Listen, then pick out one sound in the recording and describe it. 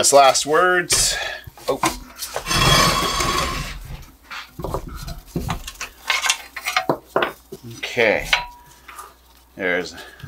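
Metal parts clank and knock as a machine is handled.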